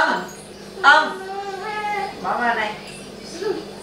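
A young child talks in a high voice nearby.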